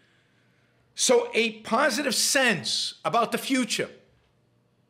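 A middle-aged man speaks with animation, close to a microphone in an online call.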